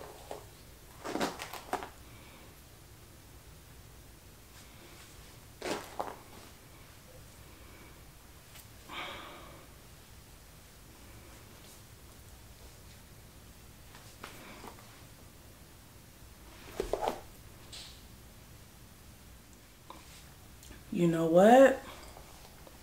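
A young woman speaks calmly in short bursts, close by.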